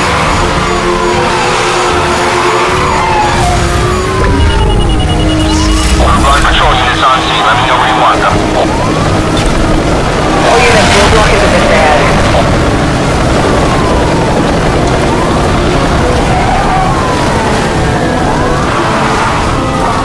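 Tyres screech as a car drifts through bends.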